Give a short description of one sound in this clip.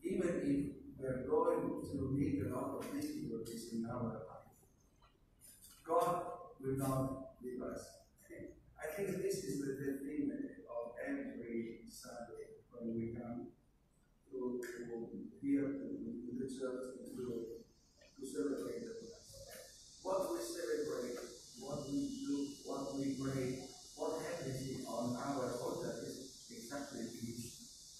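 A man speaks calmly over a loudspeaker in a large echoing hall.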